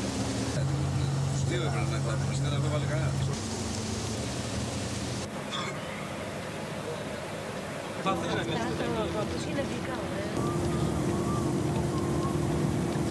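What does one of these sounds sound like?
Rain patters on a window.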